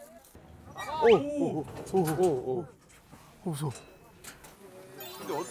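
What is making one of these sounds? Young men talk and exclaim excitedly close by.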